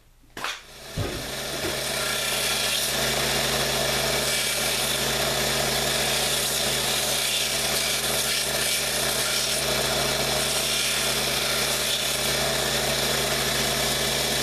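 A belt sander whirs steadily.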